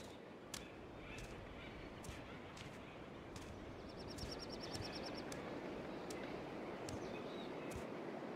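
Footsteps thud quickly over rough ground.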